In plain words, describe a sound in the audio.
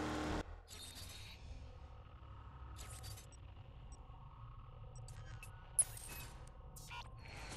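Soft clicks sound as a game menu is navigated.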